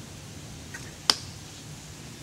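A blowgun shoots a dart with a sharp puff.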